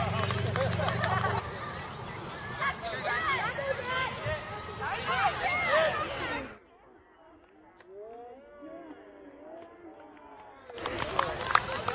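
Young children shout and call out excitedly outdoors.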